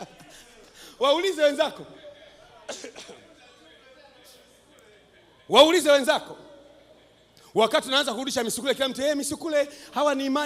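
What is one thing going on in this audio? A man preaches loudly and with passion into a microphone, heard through a loudspeaker.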